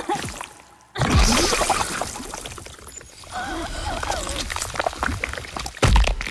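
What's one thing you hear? Thick liquid splatters onto the ground.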